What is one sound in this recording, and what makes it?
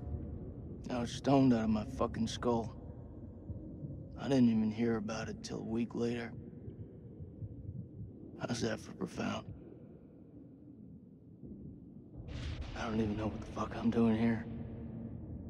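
A second young man answers calmly nearby.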